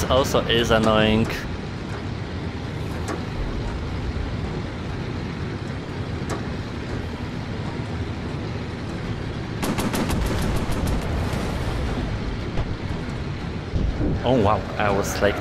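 A propeller plane's engine drones steadily.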